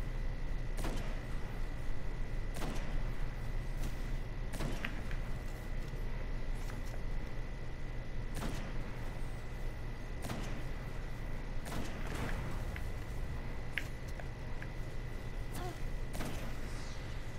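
Sniper rifle shots ring out sharply, one every second or two.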